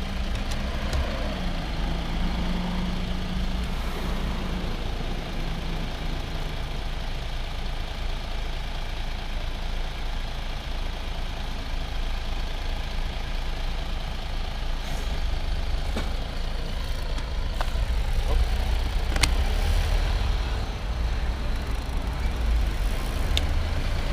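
Bicycle wheels whir on a paved road.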